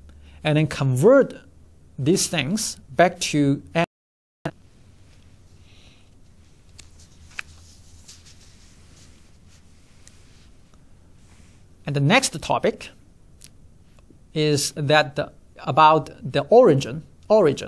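A man speaks calmly and clearly into a microphone, close by.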